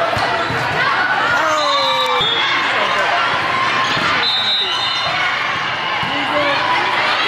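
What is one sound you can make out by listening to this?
Young women shout and cheer in a large echoing gym.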